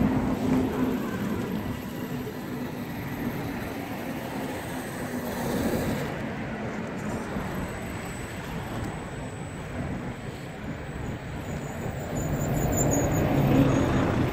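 Plastic tyres scrape and bump over a stone curb.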